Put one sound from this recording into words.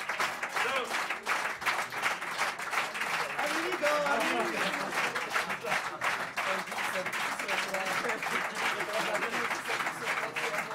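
A crowd of men and women cheers and whoops.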